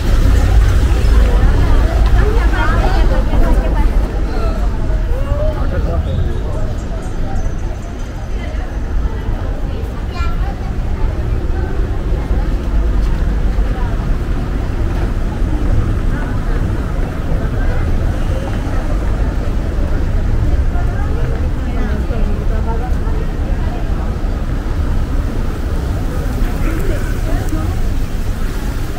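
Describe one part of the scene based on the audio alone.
Men and women chat at a distance in a busy street.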